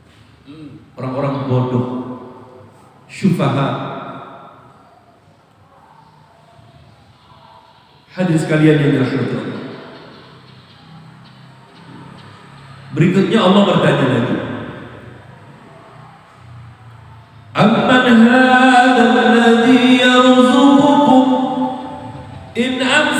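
A man speaks with animation into a microphone, echoing in a large hall.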